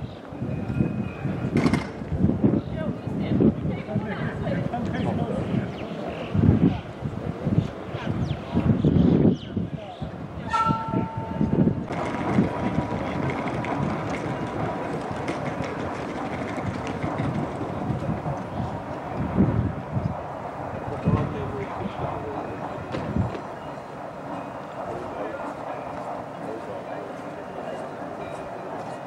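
A rack railway car rumbles and clatters as it climbs a steep track.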